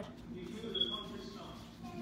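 A paintbrush dabs softly on paper.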